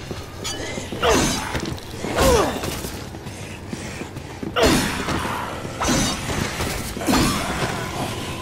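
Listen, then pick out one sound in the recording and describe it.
Heavy blows thud and squelch repeatedly.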